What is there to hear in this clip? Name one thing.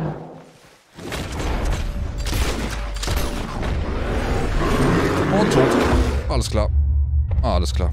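A bear growls and roars close by.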